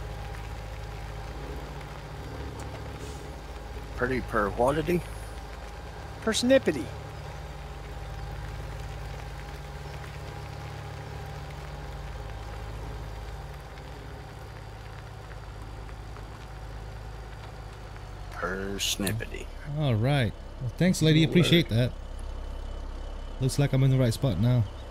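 A tractor engine hums steadily at a low pitch.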